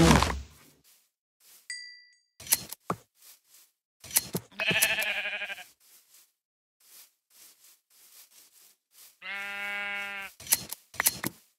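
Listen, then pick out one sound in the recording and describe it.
Footsteps crunch on grass.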